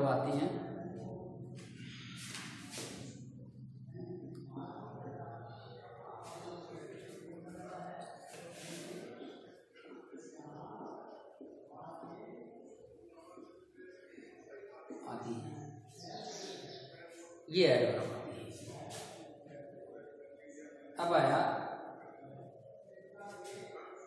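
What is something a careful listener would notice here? An elderly man speaks calmly, as if teaching.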